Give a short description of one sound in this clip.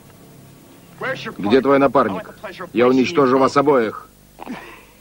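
A man speaks with animation at close range.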